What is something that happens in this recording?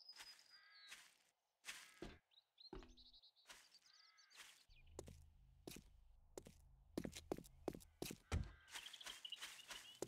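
Footsteps tread over grass and pavement.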